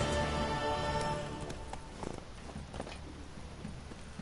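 A horse's hooves clop at a walk.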